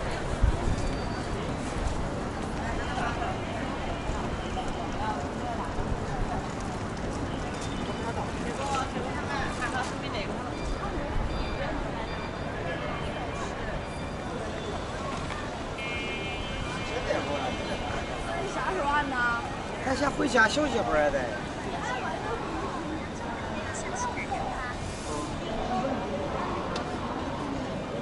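Distant crowd chatter murmurs outdoors.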